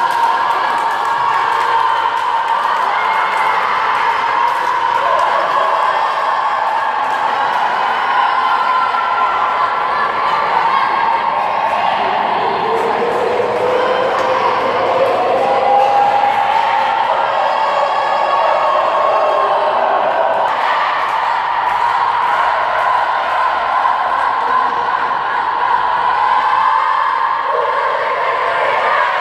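A crowd of young women sings and chants together in a large echoing hall.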